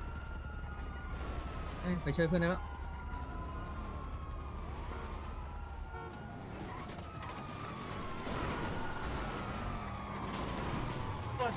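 A car engine rumbles low and revs as the car pulls away.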